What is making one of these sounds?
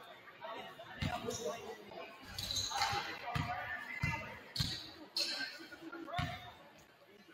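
A basketball bounces on a wooden court floor.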